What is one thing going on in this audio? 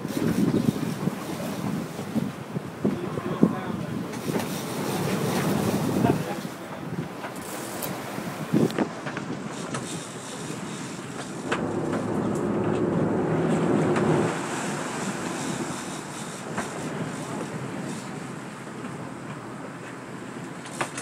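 Waves splash against a boat's hull.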